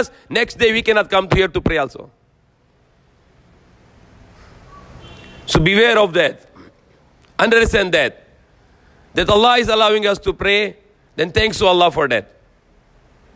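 A man speaks with feeling into a microphone, in short bursts with pauses.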